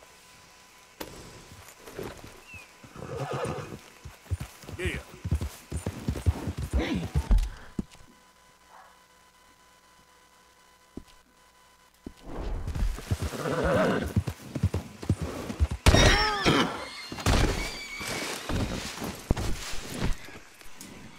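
A horse's hooves thud on the ground at a trot.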